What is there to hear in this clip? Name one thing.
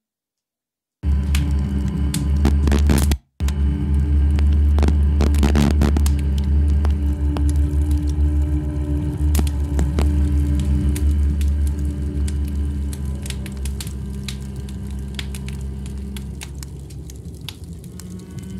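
A stringed instrument is plucked close by, with low notes ringing on.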